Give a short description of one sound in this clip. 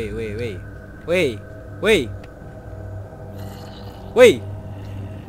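A zombie groans low and hoarsely, several times.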